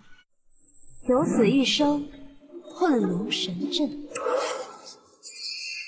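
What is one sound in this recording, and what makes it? A young woman speaks softly and calmly nearby.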